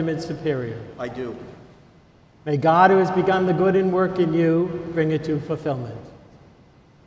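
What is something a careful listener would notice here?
A group of men chant together, echoing in a large hall.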